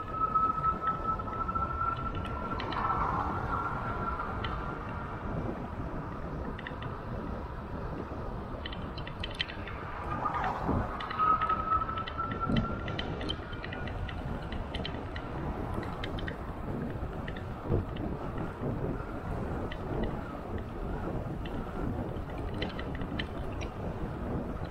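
Wind rumbles steadily and buffets while moving along outdoors.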